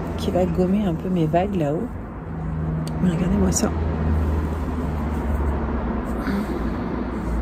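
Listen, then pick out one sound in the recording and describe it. A middle-aged woman speaks calmly, close to the microphone.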